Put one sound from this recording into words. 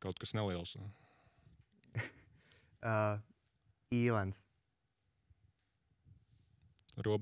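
A man speaks calmly in short bursts through a microphone.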